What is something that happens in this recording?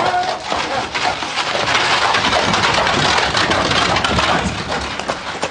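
Carriage wheels roll over gravel.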